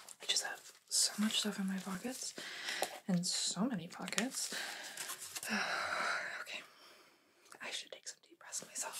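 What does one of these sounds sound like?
A young woman speaks softly, close to a microphone.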